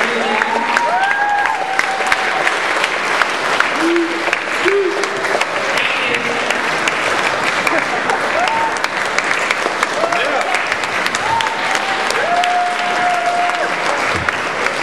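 People in an audience cheer and whoop.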